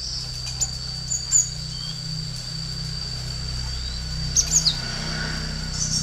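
A small bird flutters its wings while hopping about.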